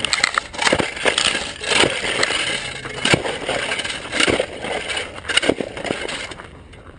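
A snow shovel scrapes and crunches through packed snow close by.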